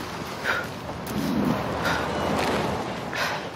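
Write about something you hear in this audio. A car engine hums as a vehicle drives past.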